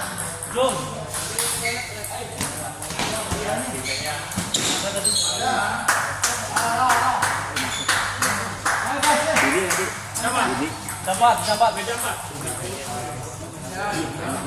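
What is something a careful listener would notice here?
Several men talk and call out in a busy, echoing hall.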